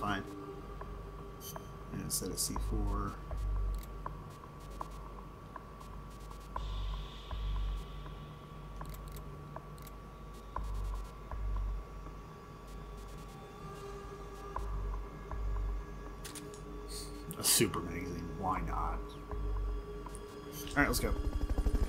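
Menu blips and clicks sound as options are selected.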